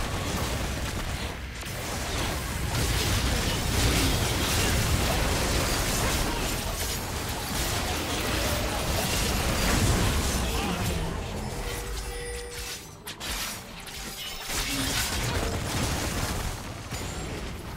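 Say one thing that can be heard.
Spell blasts and weapon clashes of a computer game battle crackle and boom.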